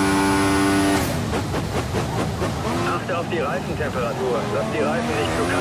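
A racing car engine drops in pitch as the car brakes and downshifts.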